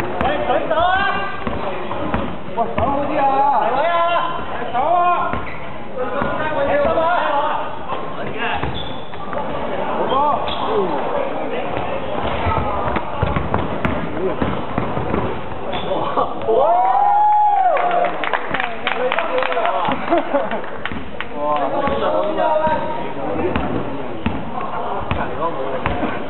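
A basketball bounces with hollow thuds on a wooden floor.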